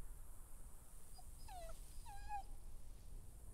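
A dog whines softly.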